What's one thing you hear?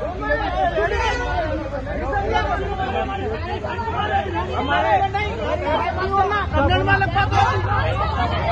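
A crowd of men shout and argue over each other close by.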